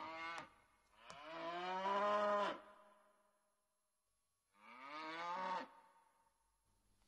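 Cows moo loudly and long.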